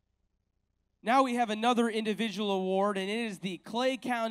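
A man speaks calmly into a microphone, heard over loudspeakers.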